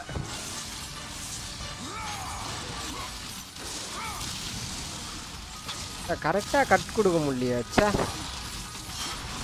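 Metal blades whoosh and slash through flesh.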